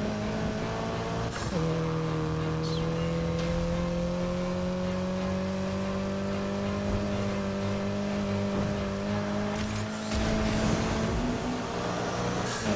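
A car engine roars at high revs, its pitch dropping suddenly once and then climbing slowly.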